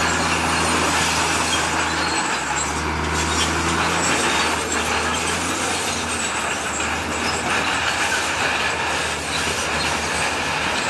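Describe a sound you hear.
A bulldozer engine rumbles steadily close by.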